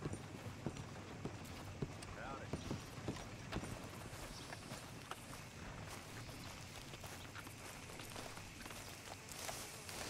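Footsteps thud on wooden boards, then on soft dirt.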